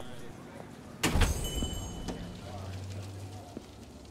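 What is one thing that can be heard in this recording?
A door swings open with a thud.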